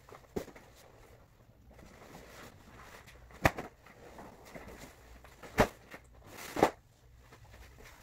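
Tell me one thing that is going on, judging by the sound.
Crinkly synthetic fabric rustles as it is shaken out.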